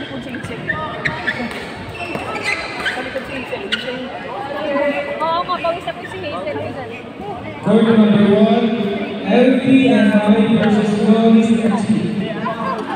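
Rackets smack a shuttlecock back and forth in an echoing hall.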